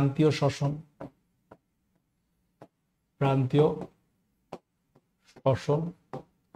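A man speaks in short bursts through a close microphone, explaining calmly.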